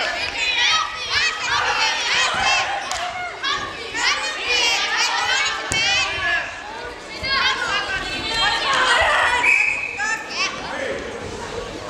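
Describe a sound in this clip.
Many children chatter and call out loudly in a large echoing hall.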